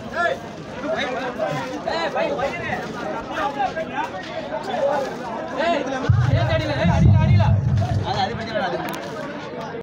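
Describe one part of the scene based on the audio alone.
A young man talks loudly nearby.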